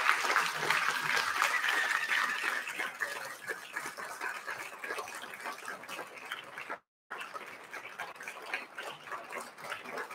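An audience applauds loudly in a large hall, then the clapping thins out.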